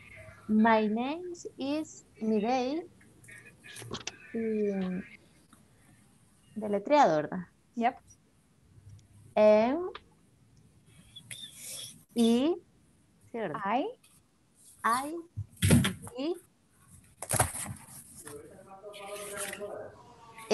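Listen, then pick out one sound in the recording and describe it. A woman speaks clearly and slowly through an online call, as if teaching.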